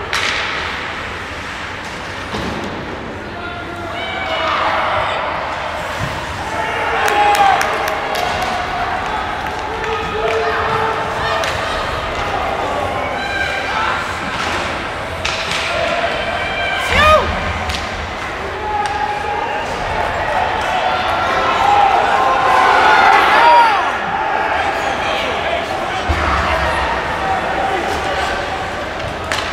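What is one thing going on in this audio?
A crowd of spectators chatters and shouts in a large echoing arena.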